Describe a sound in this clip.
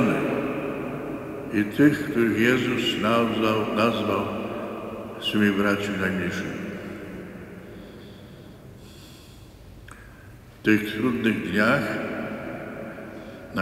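An elderly man speaks slowly and solemnly into a microphone in a large echoing hall.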